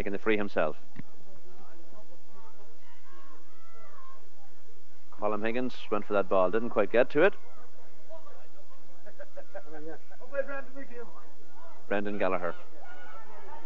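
Men shout loudly outdoors in short bursts.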